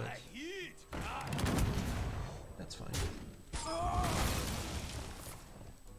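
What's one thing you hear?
Game sound effects crash and whoosh as cards strike each other.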